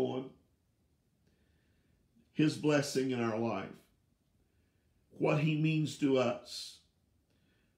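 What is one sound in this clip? An older man speaks calmly and closely, heard through a microphone, with pauses.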